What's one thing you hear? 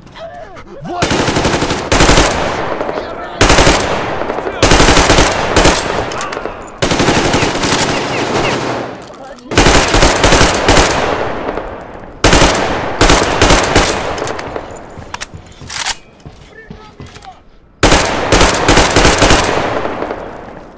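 A rifle fires in rapid bursts that echo through enclosed rooms.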